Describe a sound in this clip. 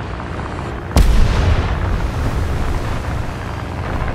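An explosion booms sharply nearby and rumbles on.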